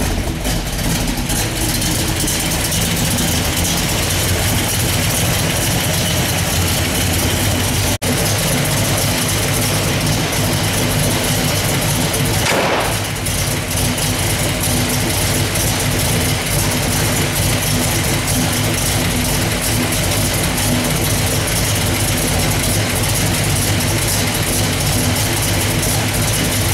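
A large engine idles with a loud, steady, deep rumble.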